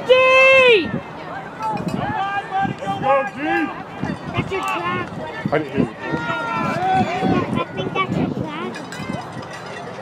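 A crowd of adult spectators shouts and cheers outdoors nearby.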